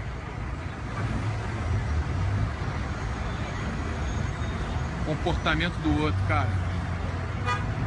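Bus engines rumble low and steadily in the street.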